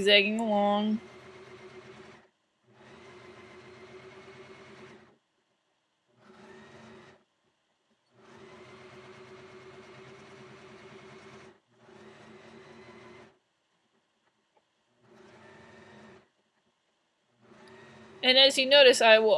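A sewing machine whirs in short bursts.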